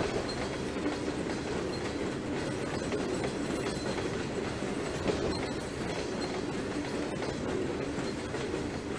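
A freight train's cars rumble and clatter over the rails.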